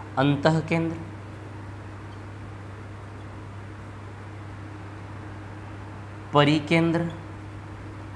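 A man speaks in short phrases nearby.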